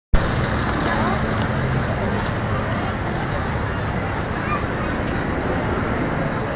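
Car engines hum in traffic.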